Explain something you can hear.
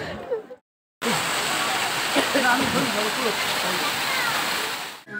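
A waterfall splashes steadily onto rocks.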